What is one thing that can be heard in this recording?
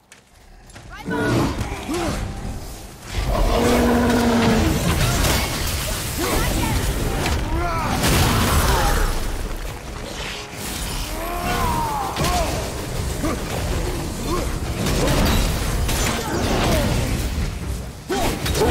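A large beast growls and roars.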